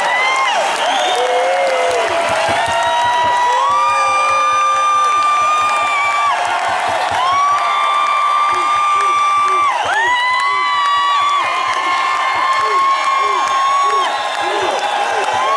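A man sings loudly through a microphone, holding long notes.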